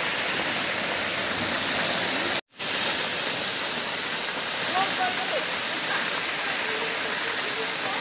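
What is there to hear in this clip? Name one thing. A waterfall pours and splashes heavily onto rocks.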